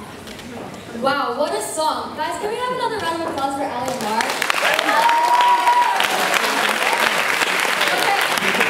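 A young woman speaks into a microphone, heard through loudspeakers in a large hall.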